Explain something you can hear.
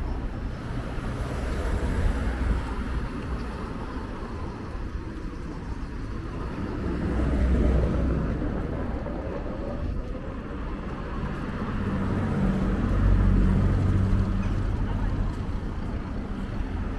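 Traffic passes along a nearby road.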